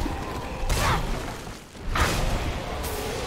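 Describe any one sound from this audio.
A blade strikes a creature with a heavy, wet impact.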